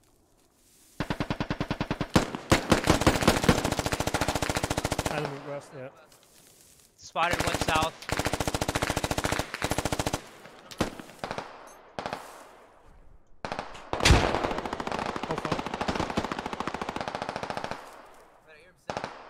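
A rifle fires in rapid automatic bursts close by.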